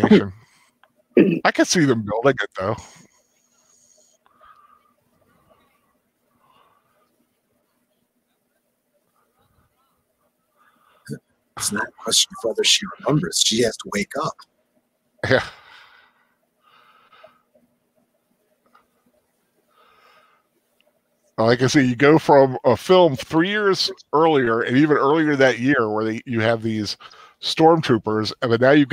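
A man speaks with animation through an online call, with pauses.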